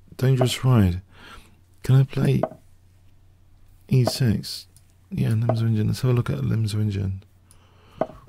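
An older man talks with animation into a close microphone.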